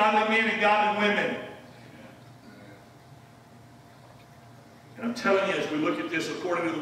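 A man preaches with animation through a microphone in a large echoing hall.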